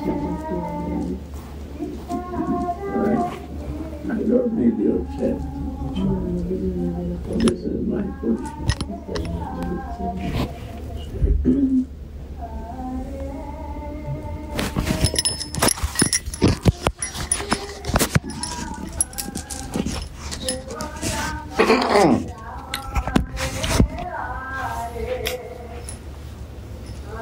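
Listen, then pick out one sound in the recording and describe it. An elderly man speaks slowly and calmly, close by.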